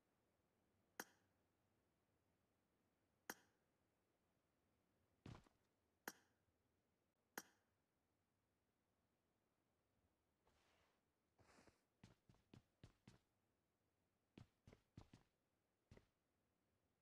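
Single gunshots crack out sharply, one at a time, with short echoes.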